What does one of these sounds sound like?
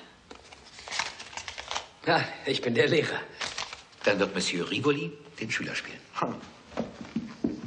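Middle-aged men talk and laugh close by.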